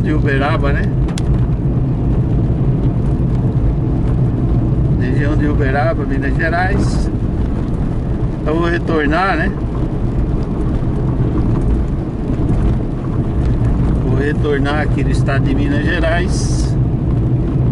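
Windscreen wipers squeak across the glass.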